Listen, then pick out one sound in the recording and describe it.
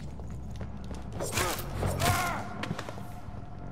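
Heavy blows strike a body in a brief fight.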